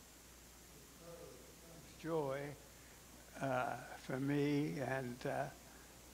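A woman speaks into a microphone in a large echoing hall.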